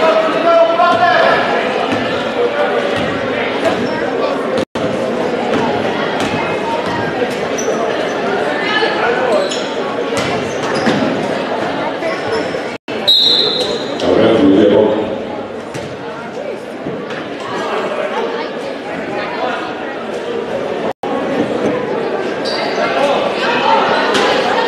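A crowd of spectators chatters and cheers in a large echoing hall.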